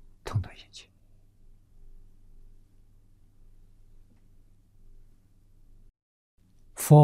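An elderly man speaks calmly into a microphone, close by.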